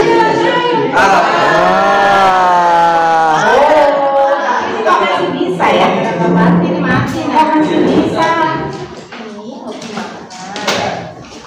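A woman sings loudly into a microphone, heard through a loudspeaker in an echoing room.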